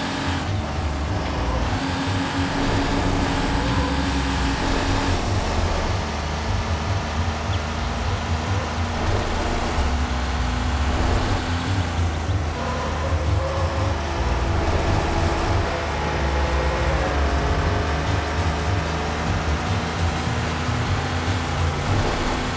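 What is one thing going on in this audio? A car engine roars steadily, shifting pitch as it speeds up and changes gear.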